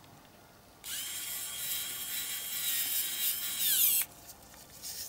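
A small rotary tool whirs with a high whine as it grinds metal.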